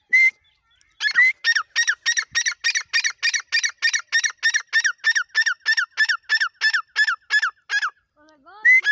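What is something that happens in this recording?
A partridge calls in a fast, rapid burst of chirps.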